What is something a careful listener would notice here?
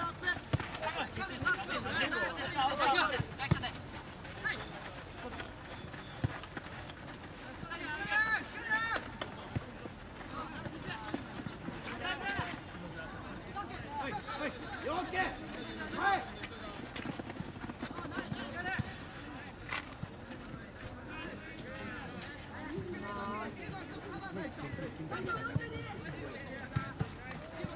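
Young players shout to one another across an open field.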